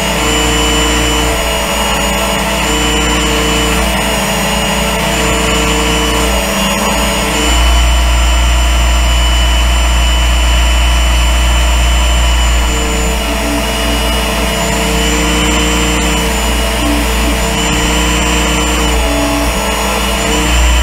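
A knife blade grinds against a spinning sanding belt.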